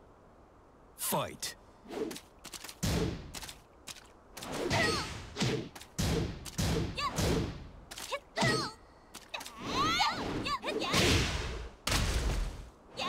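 Game punches and kicks land with sharp thuds.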